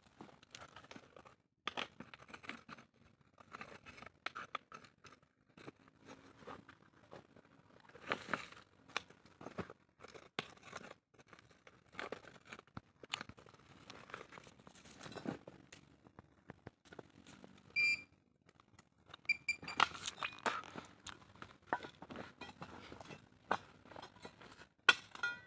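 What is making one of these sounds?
A small trowel scrapes and digs into dry soil.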